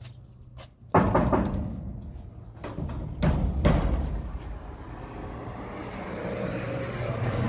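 A metal door rattles and clanks.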